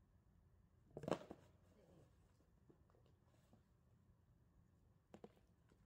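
A small dog barks sharply nearby.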